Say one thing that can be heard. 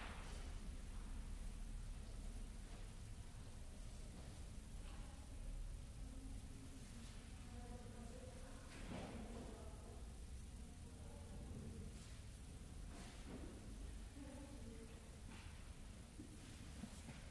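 A man speaks calmly and softly into a microphone in a large echoing hall.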